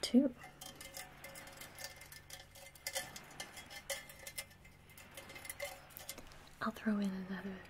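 Fingertips scratch and tap on a metal bowl close to a microphone.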